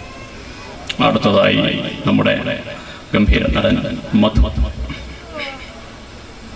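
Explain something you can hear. A young man speaks animatedly through a microphone.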